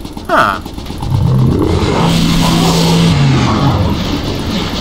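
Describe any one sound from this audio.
A monster lets out a deep, loud roar.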